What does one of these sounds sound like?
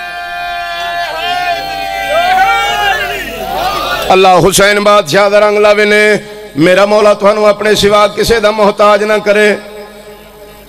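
A man chants loudly through loudspeakers, echoing outdoors.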